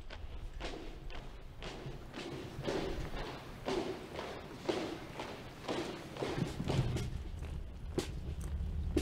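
Soldiers march in step, their boots striking the ground in a steady rhythm.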